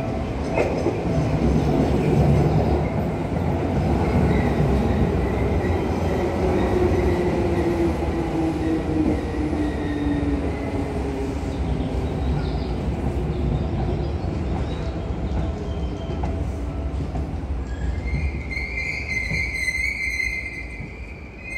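A train rumbles and clatters along the tracks close by.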